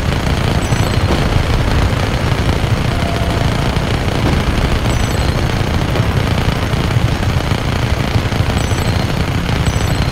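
A helicopter's rotor thumps and roars steadily.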